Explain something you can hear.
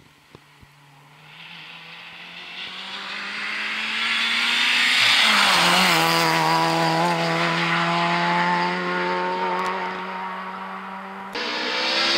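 A second rally car engine roars closer, revving and then fading away.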